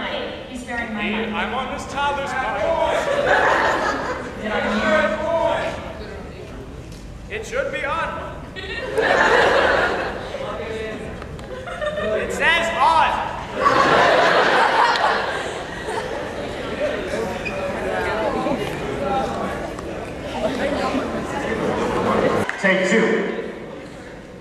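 A young man sings, heard from the audience in a hall.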